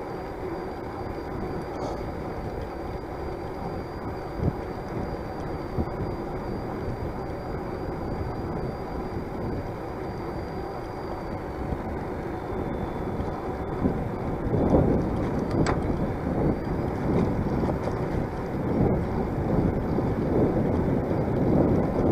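Wind rushes past, gusting louder toward the end.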